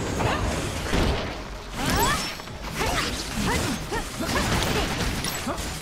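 Magical energy blasts whoosh and crackle in quick bursts.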